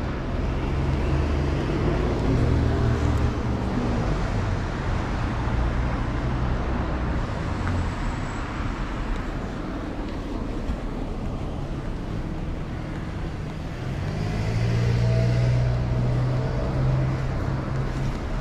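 Cars drive past on a city street.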